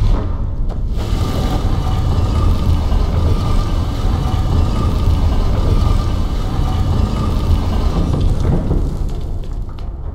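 A massive stone door grinds and rumbles as it slowly lowers.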